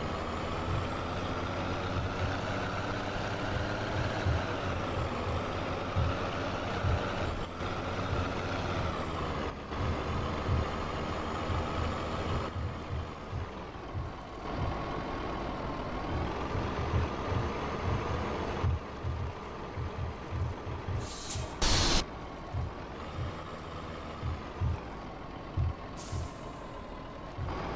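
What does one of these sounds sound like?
A truck's body bumps and thuds over a rough dirt road.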